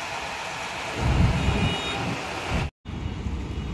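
A cement mixer truck's engine rumbles nearby.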